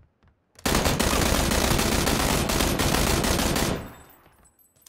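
Rapid automatic gunfire blasts loudly.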